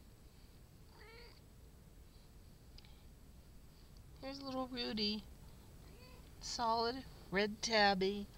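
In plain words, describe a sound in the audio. A kitten mews loudly in high, rising cries.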